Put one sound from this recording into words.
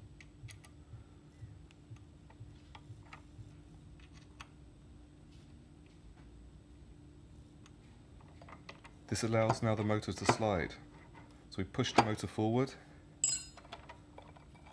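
Small metal parts click and tap softly.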